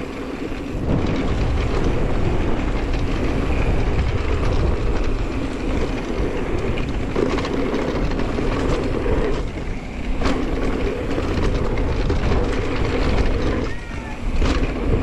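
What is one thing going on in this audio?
Wind rushes past loudly, rumbling low.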